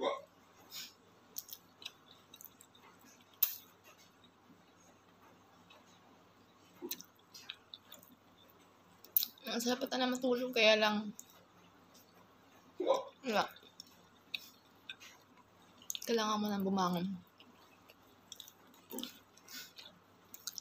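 A woman chews food with wet smacking sounds close to the microphone.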